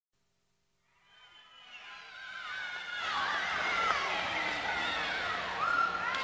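Young women shout and cheer in a large echoing hall, growing louder.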